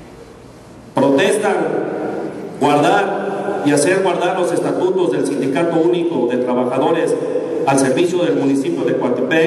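A crowd sings together in an echoing courtyard.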